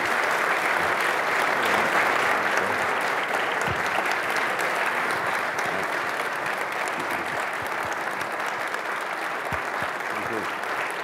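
A large audience applauds in a big hall, then the clapping slowly fades.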